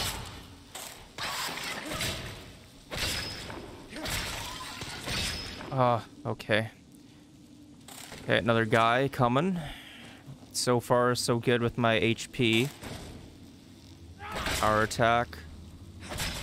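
A blade slashes and thuds against a giant spider.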